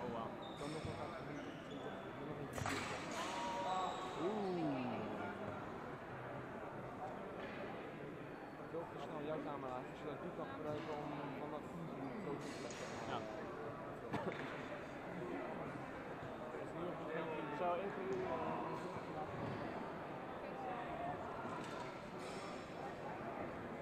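A crowd of men and women chatter throughout a large echoing hall.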